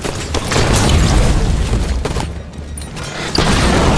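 A melee weapon swings and strikes with a heavy thud.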